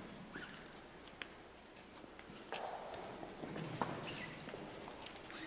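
People murmur quietly in a large echoing hall.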